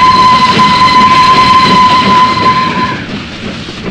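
A steam locomotive's whistle blows in a long steady tone, then stops.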